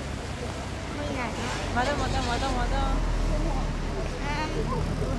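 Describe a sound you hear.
A crowd of spectators cheers and chatters along the road.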